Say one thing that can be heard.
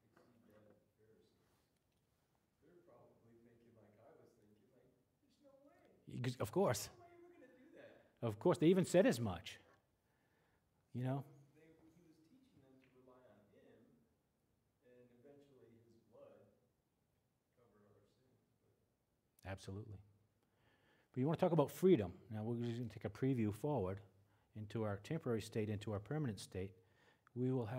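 A middle-aged man speaks calmly through a microphone, lecturing.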